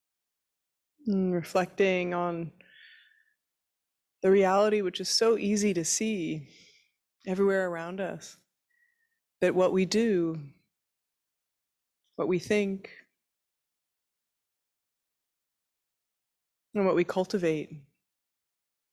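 A young woman speaks calmly and slowly into a microphone, with long pauses.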